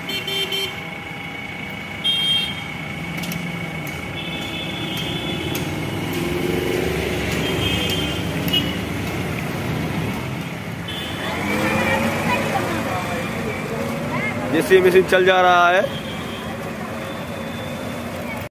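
Motorbikes and auto-rickshaws drive past on the street.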